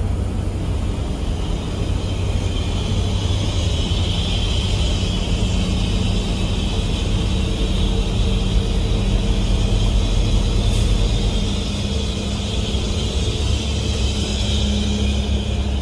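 A large bus engine roars close by as it is overtaken.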